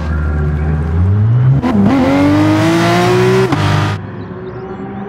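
A race car engine revs sharply and roars away.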